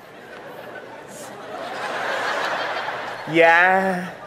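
An audience laughs and cheers in a large hall.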